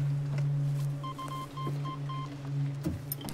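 An alarm beeps in short, evenly spaced pulses.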